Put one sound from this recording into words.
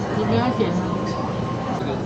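Cutlery clinks on dishes.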